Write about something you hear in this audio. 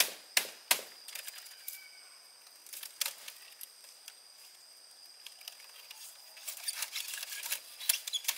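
Thin bamboo strips rustle and creak as they are woven.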